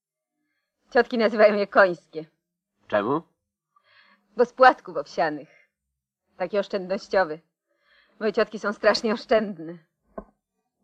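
A woman talks lightly at close range.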